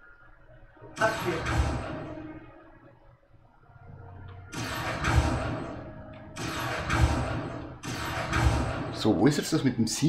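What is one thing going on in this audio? A magic spell whooshes and crackles several times.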